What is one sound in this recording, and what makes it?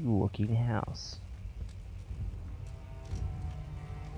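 A fire crackles softly in a fireplace.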